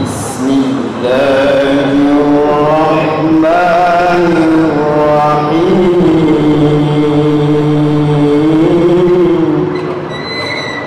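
A young man chants in a long, melodic voice through a microphone and loudspeakers.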